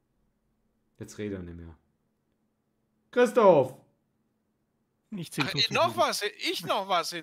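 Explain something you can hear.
A middle-aged man speaks close to a microphone, in short bursts with pauses.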